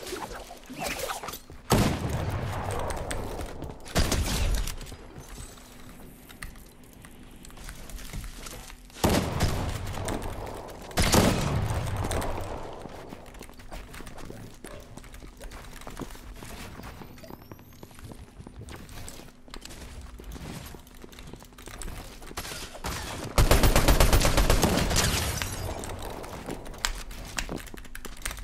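Keys on a keyboard click and clatter rapidly.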